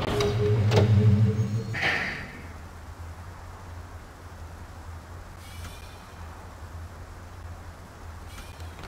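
Steam hisses softly from vents.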